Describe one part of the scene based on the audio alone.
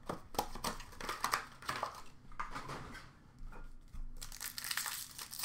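Plastic wrappers crinkle and rustle as packs are handled close by.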